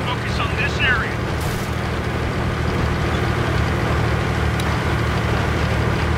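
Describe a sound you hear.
A heavy tank engine rumbles low and steadily.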